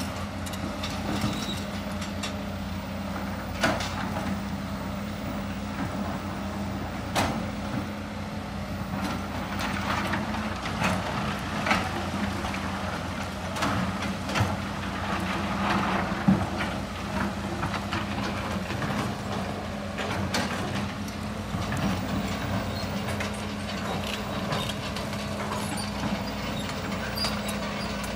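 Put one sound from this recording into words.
Excavator engines rumble steadily nearby.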